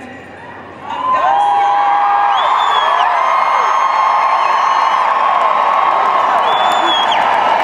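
A large crowd cheers and whistles.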